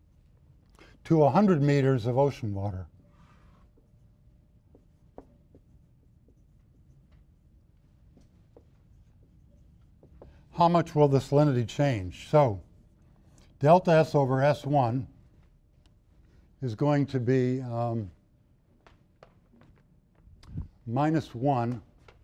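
A middle-aged man speaks calmly, in bursts with pauses.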